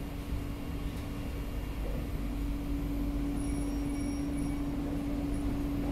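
An electric metro train hums and rumbles along a track, heard from inside the carriage.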